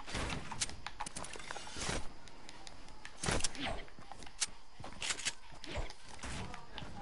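Quick footsteps thud across grass.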